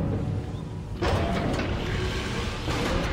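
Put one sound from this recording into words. A heavy metal door grinds open.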